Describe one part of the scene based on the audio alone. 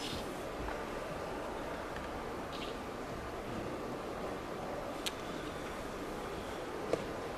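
A chess piece is set down on a wooden board with a soft tap.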